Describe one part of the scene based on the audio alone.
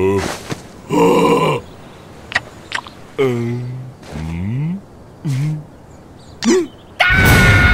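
A cartoon creature babbles and squeals in a high, silly voice.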